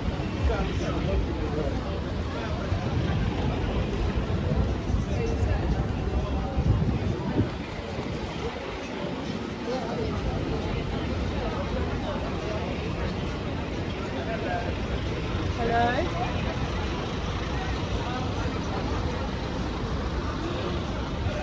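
A crowd of people talks and murmurs outdoors.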